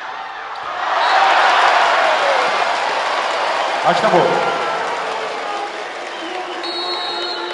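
A crowd cheers loudly in a large echoing arena.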